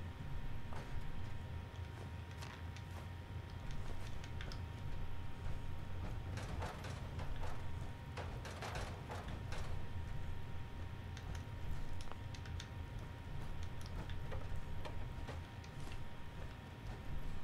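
Heavy metal footsteps clank on a hard floor.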